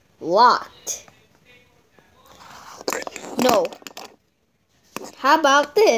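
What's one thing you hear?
A small plastic toy taps on a wooden floor.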